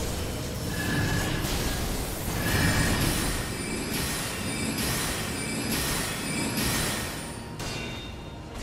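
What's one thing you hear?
Magic blasts crackle and hum.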